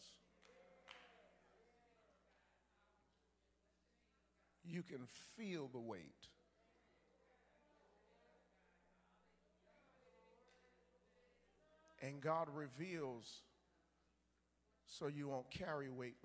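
A man speaks into a microphone with animation, his voice carried over loudspeakers in a large hall.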